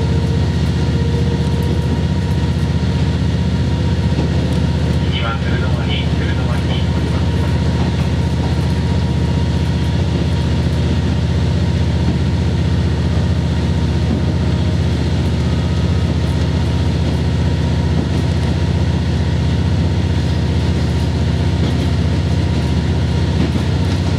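The diesel engine of a railcar drones, heard from inside the carriage.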